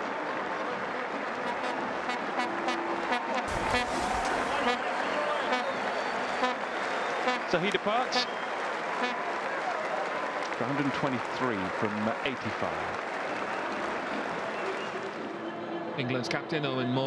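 A large crowd cheers loudly outdoors.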